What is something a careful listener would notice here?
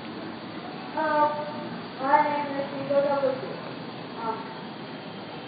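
Children call out loudly in high voices nearby, outdoors.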